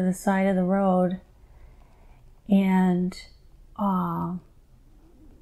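A middle-aged woman moans in long drawn-out sounds close to a microphone.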